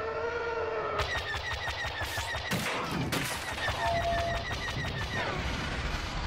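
Laser cannons fire in quick, rapid bursts.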